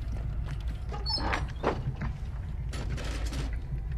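A chest creaks open.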